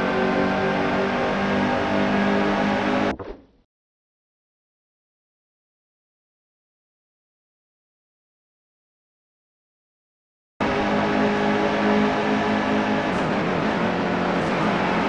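Race car engines roar loudly at high speed.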